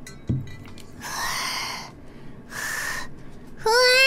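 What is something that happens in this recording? A young woman sighs heavily through a microphone.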